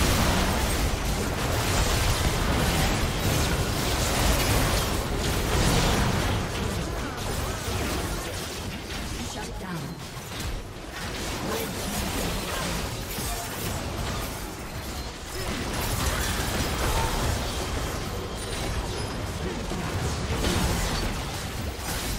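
Spell blasts and clashing combat effects crackle in a fast fight.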